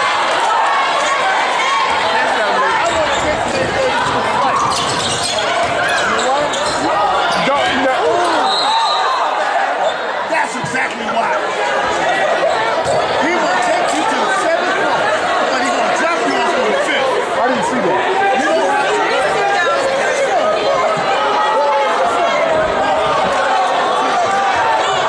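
A crowd of spectators cheers and shouts loudly in an echoing gym.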